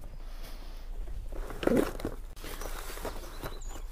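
A wooden crate knocks as a man moves it.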